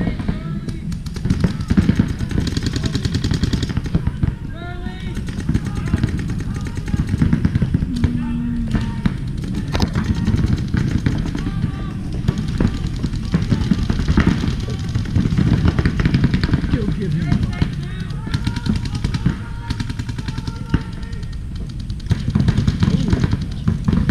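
Paintball markers pop in quick bursts in the distance.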